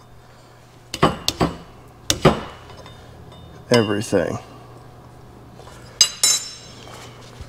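Metal parts clank and knock on a steel table.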